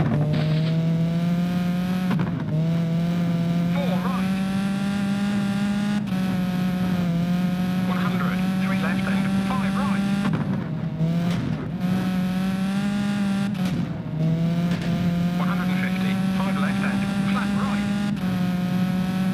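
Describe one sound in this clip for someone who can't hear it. A rally car engine screams at high revs and shifts up through the gears.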